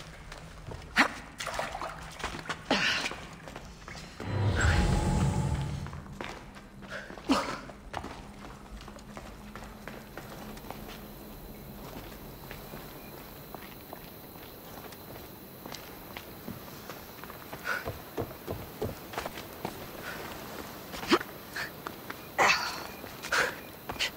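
Climbing hands and feet scrape against rock.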